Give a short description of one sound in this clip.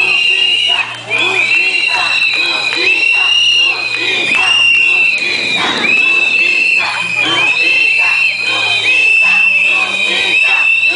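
A crowd of women and men sings together outdoors.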